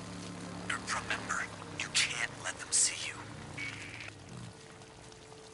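A motorcycle engine idles with a low rumble, then cuts off.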